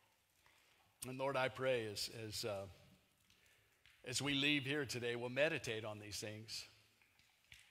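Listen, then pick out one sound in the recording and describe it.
An elderly man speaks calmly, his voice echoing in a large hall.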